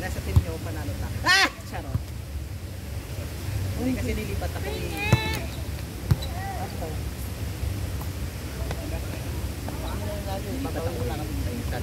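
Young people shout and call out outdoors.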